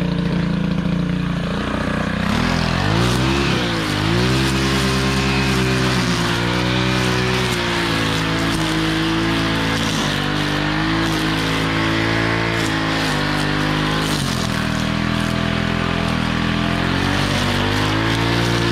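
A string trimmer engine whines loudly up close, its pitch rising and falling.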